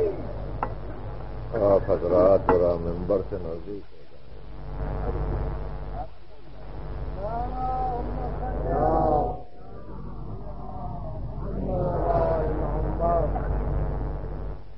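A middle-aged man recites in a melodic, rising and falling voice, heard through an old recording.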